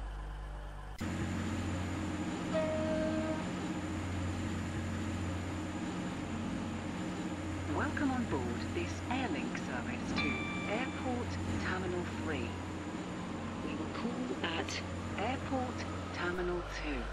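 A train's electric motor hums and rises in pitch as the train speeds up.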